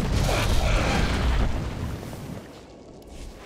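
A loud whooshing burst of energy fades away.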